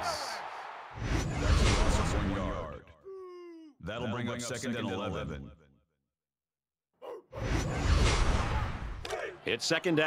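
A loud whoosh sweeps past.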